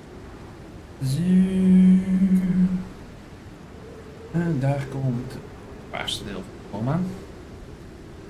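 A man talks into a close microphone in short bursts.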